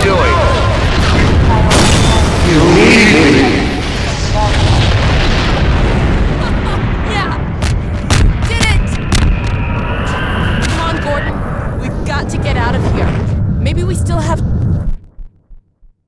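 Electricity crackles and zaps loudly.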